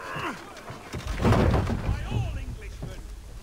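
A wooden cart tips over and crashes onto the ground.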